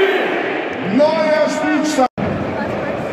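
A stadium crowd chants in unison.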